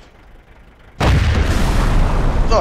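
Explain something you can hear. A shell explodes with a deep, rumbling blast.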